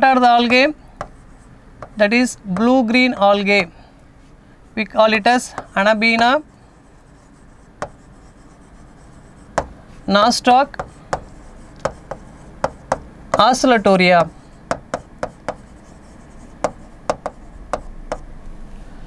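A marker taps and squeaks on a board.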